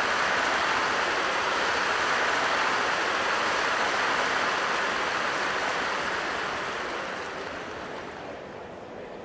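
A large crowd applauds, then the applause fades away.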